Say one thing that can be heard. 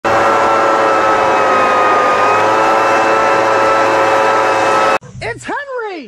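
A leaf blower roars steadily close by.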